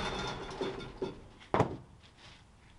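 A wooden board thuds as it is set down.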